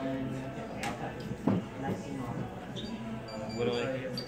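A card is set down lightly on a cloth mat.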